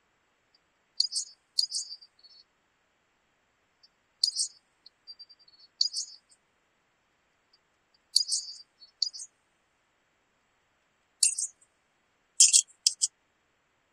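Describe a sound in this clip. Short metallic clicks sound as weapon attachments snap on in a video game menu.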